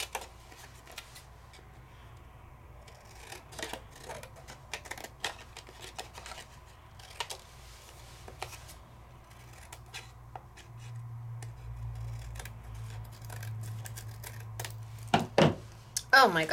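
Scissors snip through thin card with small crisp clicks.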